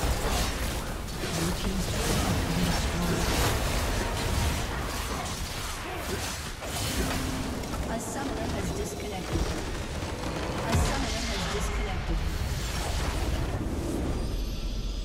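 Magic blasts and clashes of a fantasy battle ring out rapidly.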